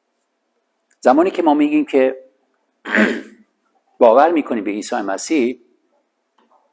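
A man speaks calmly into a clip-on microphone, with pauses.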